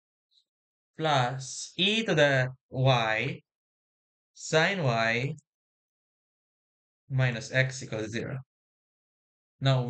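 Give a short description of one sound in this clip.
A young man speaks calmly into a close microphone, explaining step by step.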